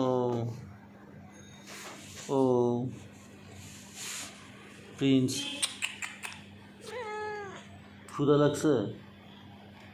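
A cat meows repeatedly close by.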